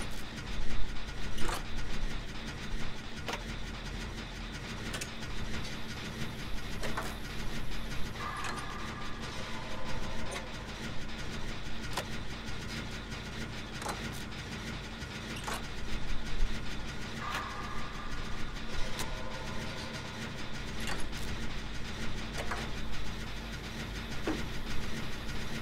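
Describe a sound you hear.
A generator engine rumbles steadily.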